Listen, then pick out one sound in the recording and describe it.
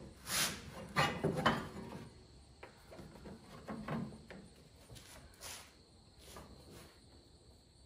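Metal tools clink and scrape in an engine bay.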